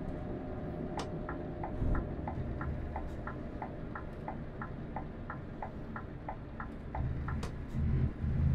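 A turn signal ticks evenly.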